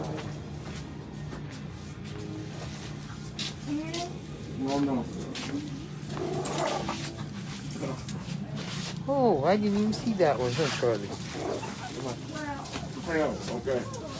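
Plastic bags of bread rustle as they are handled.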